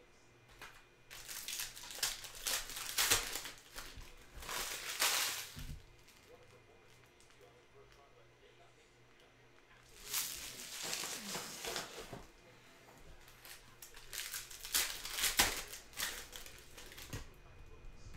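A foil wrapper crinkles and tears open up close.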